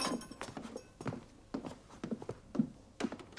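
A door latch clicks and rattles.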